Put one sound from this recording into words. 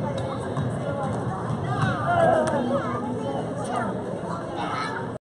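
Children shout and squeal nearby.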